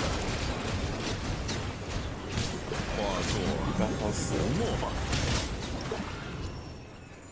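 Game sound effects of blasts and magic attacks crash loudly.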